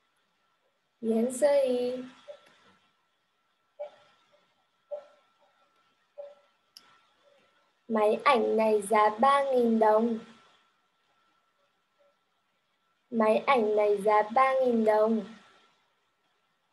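A young woman speaks clearly and slowly over a microphone.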